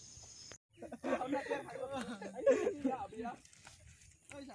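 A young man talks with animation outdoors.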